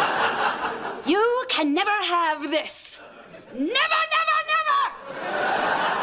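A woman speaks angrily and loudly.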